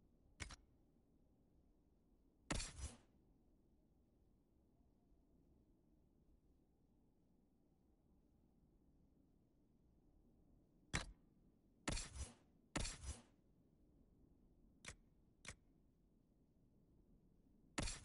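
Short interface clicks and swishes sound as menu selections change.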